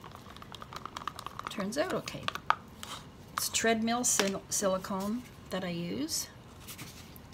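Plastic cups clink and tap as they are handled.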